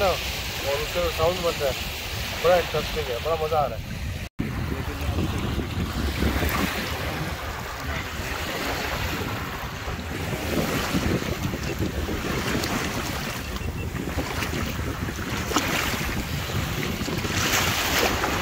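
Wind blows across the microphone.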